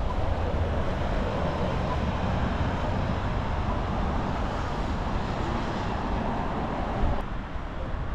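A bus engine rumbles as the bus pulls away.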